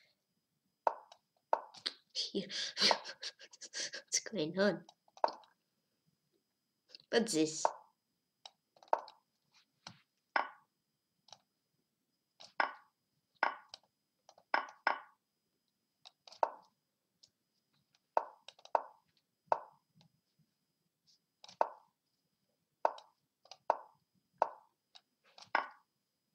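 Chess pieces click sharply as moves are made.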